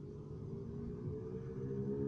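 Thunder rumbles in the distance.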